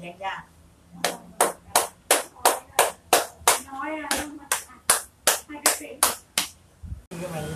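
Hands rhythmically chop and slap on a woman's back and shoulders.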